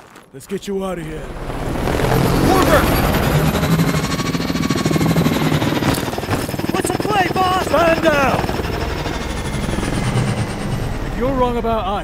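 An aircraft engine roars loudly overhead.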